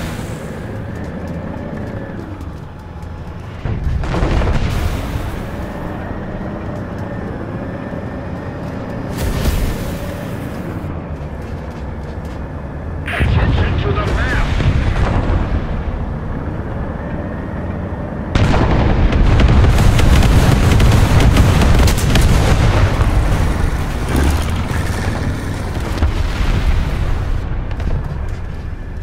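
A diesel tank engine rumbles as the tank drives.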